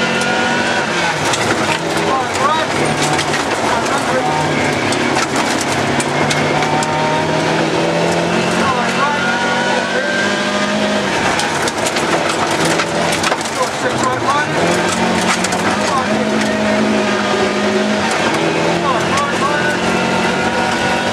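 Gravel and stones rattle and ping against the car's underside.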